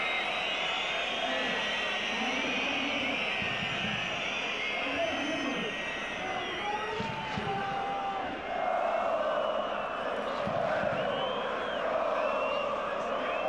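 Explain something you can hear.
A large crowd of football fans sings and chants loudly in a stadium.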